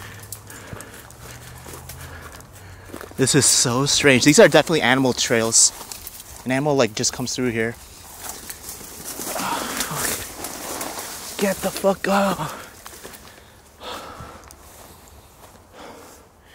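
Footsteps tread along a leafy forest path.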